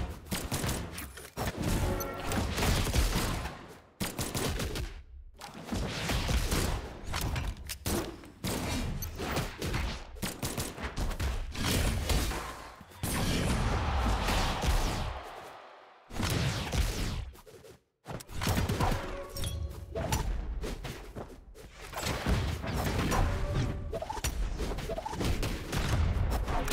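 Game punches and blasts thud and whoosh in quick bursts.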